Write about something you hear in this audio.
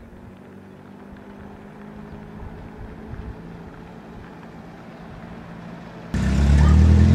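A car approaches slowly from a distance with a low engine hum.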